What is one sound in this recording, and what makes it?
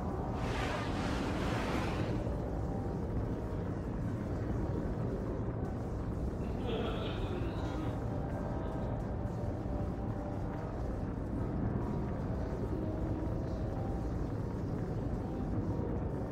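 Spaceship engines rumble steadily.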